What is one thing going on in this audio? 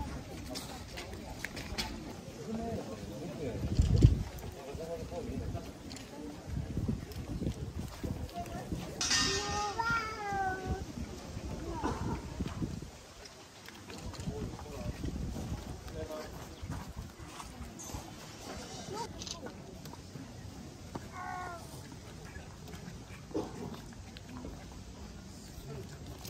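A crowd of onlookers murmurs and chatters nearby outdoors.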